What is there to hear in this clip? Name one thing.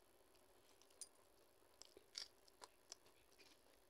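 A woman bites into something crunchy.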